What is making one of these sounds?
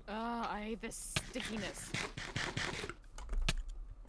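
Crunching bites of food are eaten.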